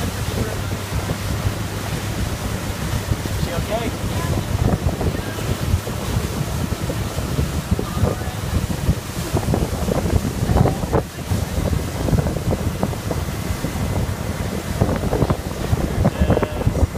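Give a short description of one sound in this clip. Wind buffets loudly, outdoors on open water.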